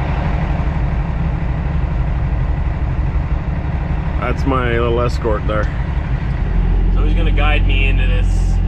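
A truck's diesel engine rumbles steadily at idle.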